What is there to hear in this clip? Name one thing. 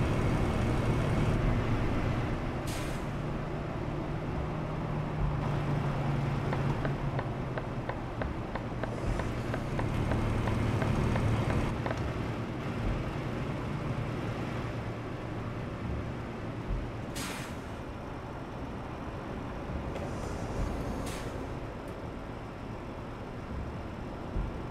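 A diesel truck engine drones while cruising.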